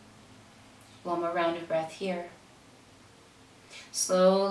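An older woman speaks calmly and close by.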